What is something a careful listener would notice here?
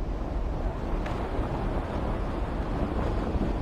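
Wind rushes loudly past a body falling through the air.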